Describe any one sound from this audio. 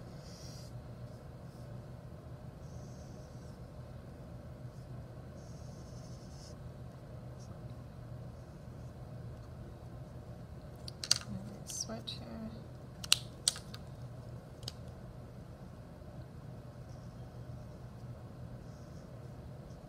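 A marker squeaks softly across paper in short strokes.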